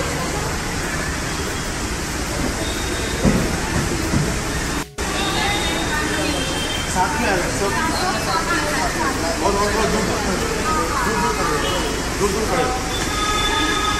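A crowd of women and girls chatter and call out outdoors.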